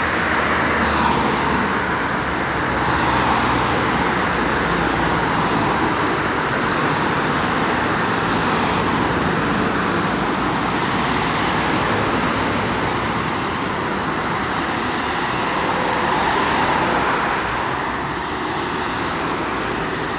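Cars pass by close with a rushing whoosh of tyres.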